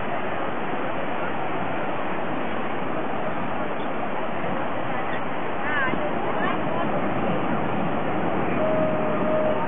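Waves wash steadily onto a beach.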